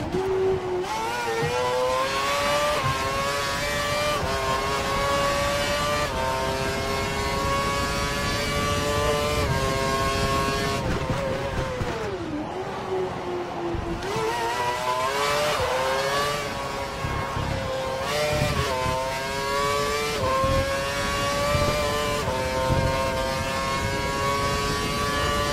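A Formula One V8 engine screams as it revs up through the gears.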